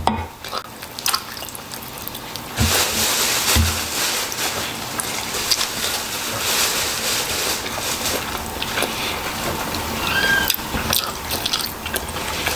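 A man bites into crispy fried chicken with a crunch.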